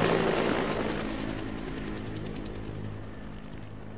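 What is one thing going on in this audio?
A helicopter flies overhead with its rotor thumping.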